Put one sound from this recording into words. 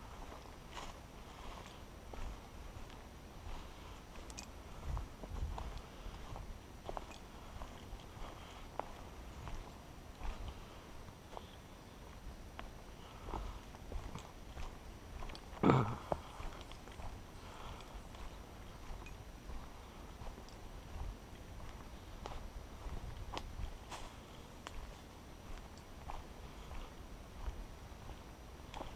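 Footsteps crunch steadily along a dirt trail.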